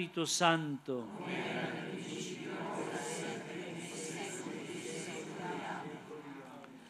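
A crowd murmurs a response together in the distance.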